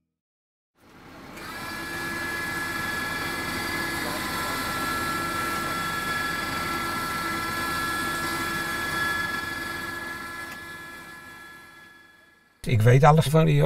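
A motor hums steadily as a machine lowers into a shaft.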